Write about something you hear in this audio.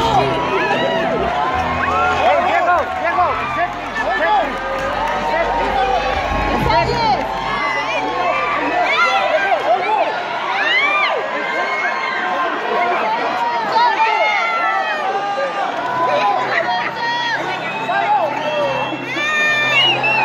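A crowd of young men and women cheers and shouts excitedly close by.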